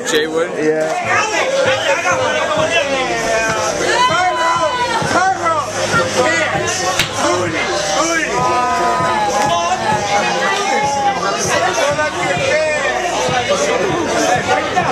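Upbeat music with singing plays loudly.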